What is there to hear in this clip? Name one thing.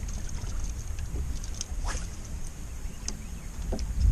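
A fishing line whirs off a reel as a lure is cast.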